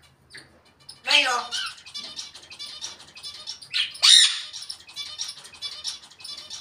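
A parrot chatters and mimics speech sounds.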